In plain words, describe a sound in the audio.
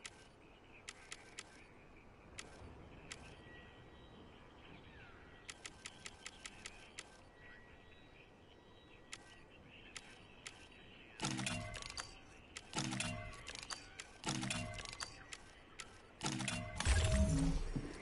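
Soft menu clicks tick one after another.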